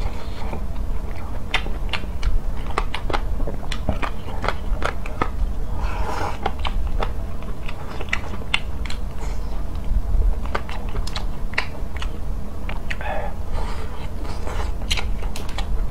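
A young man chews and slurps food loudly and close to a microphone.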